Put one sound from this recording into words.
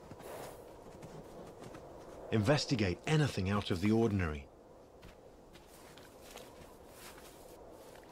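Heavy paws crunch softly on snow.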